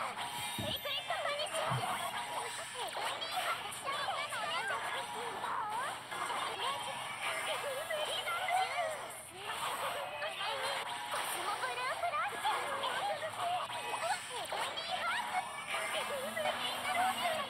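Video game battle effects whoosh, clash and burst rapidly.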